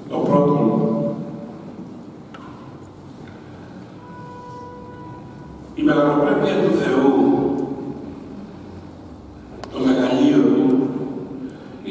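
An elderly man speaks calmly into a microphone in a large echoing hall, with pauses between phrases.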